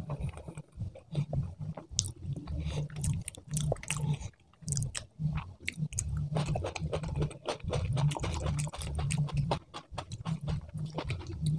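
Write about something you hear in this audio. Fingers squelch and mix rice on a metal plate.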